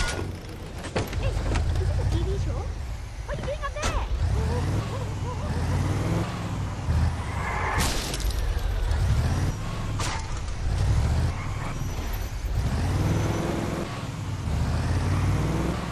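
A truck engine roars and revs.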